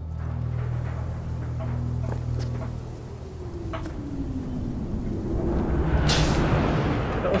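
Hands clamber up onto a metal shutter with dull metallic thumps.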